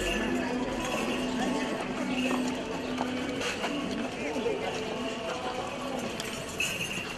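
Men chant in a slow, drawn-out procession hymn outdoors.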